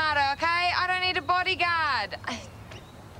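A young woman speaks loudly and with animation, close by.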